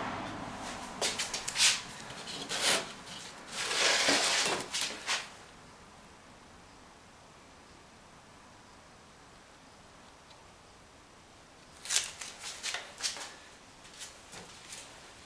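Paper rustles and crinkles as a hand handles it.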